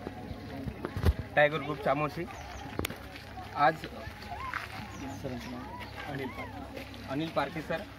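Several young people murmur and talk in the background.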